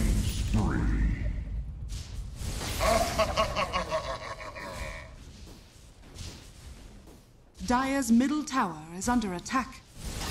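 Magic spell and combat sound effects crackle and burst in a video game.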